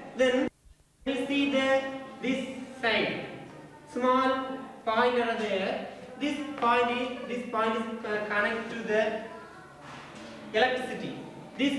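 A young man speaks calmly, explaining.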